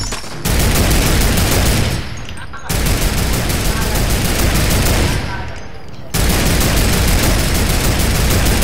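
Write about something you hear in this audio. A mounted machine gun fires in long, rapid bursts.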